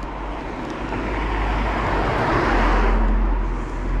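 A car drives past close by on the street.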